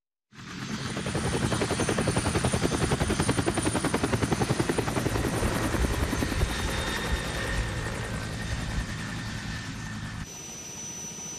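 Helicopter rotor blades thump rapidly and fade as the helicopter flies away.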